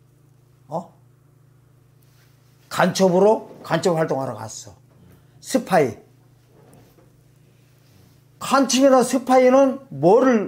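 A middle-aged man preaches with animation into a microphone, in bursts with pauses.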